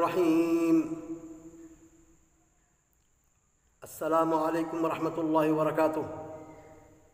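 A middle-aged man chants in a slow, drawn-out voice close by, with a long echo after each phrase.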